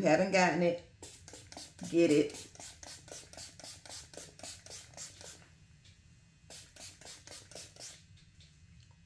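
A spray bottle hisses in quick, repeated pumps.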